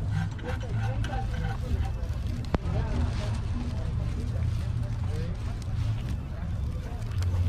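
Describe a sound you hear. Adults chatter nearby outdoors.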